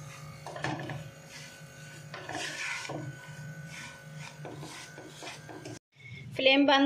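A wooden spatula scrapes and stirs crumbly food in a pan.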